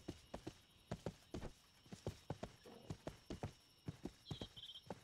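Footsteps thud quickly on a dirt path.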